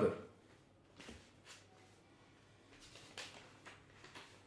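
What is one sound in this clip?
Paper pages rustle as a man turns them.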